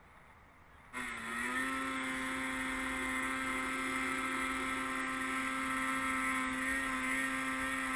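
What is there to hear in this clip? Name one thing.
A snowmobile engine hums steadily close by.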